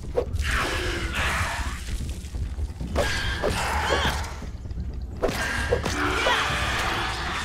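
Weapon blows thud and squelch against a giant spider.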